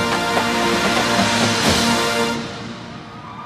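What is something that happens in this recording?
A marching band plays a loud, full chord in a large echoing stadium, then stops.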